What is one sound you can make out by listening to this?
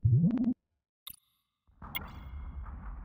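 Explosions burst with sharp cracks.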